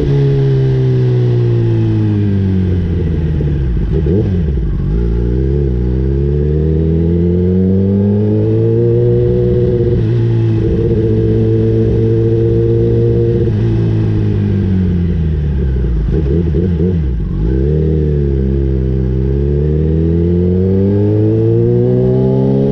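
A motorcycle engine rumbles loudly up close, revving up and down as it shifts gears.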